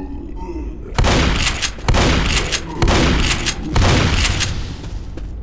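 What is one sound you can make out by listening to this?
A shotgun fires loud blasts several times, echoing.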